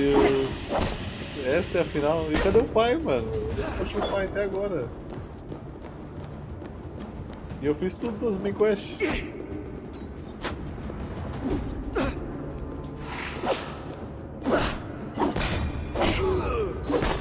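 Swords clash and strike in quick bursts.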